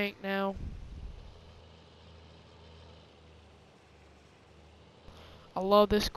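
A tractor engine hums with a low, steady rumble.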